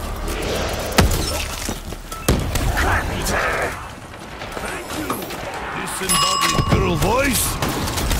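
Gunshots boom sharply.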